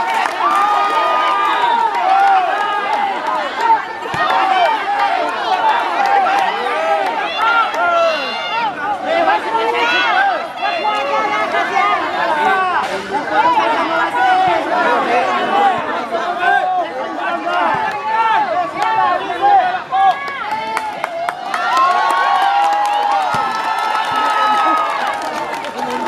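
A crowd of spectators outdoors chatters and cheers loudly.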